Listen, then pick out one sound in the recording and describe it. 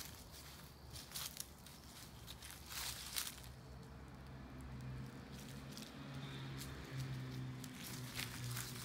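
Wind rustles through bare tree branches outdoors.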